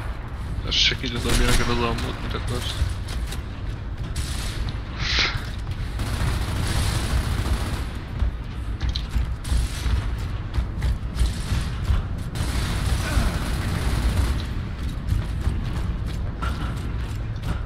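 A deep mechanical rumble drones steadily.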